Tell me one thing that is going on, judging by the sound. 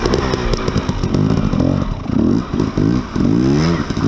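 A motorbike splashes through shallow water.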